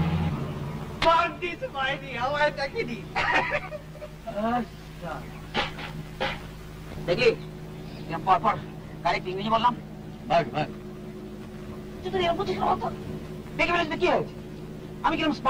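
Adult men talk with each other outdoors.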